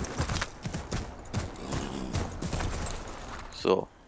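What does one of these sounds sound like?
Horse hooves clop on a snowy street.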